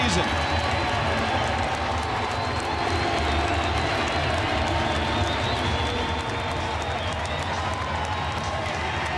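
A large stadium crowd cheers and claps loudly.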